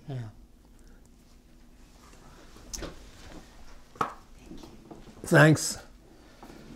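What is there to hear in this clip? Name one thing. An elderly man speaks quietly and haltingly, close by.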